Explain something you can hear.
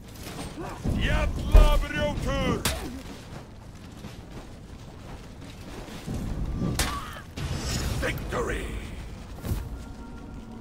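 Steel blades clash and strike hard.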